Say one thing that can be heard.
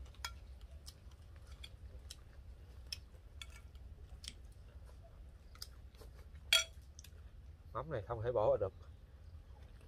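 A man chews food with soft crunching.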